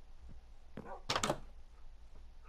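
A wooden door swings open with a clunk.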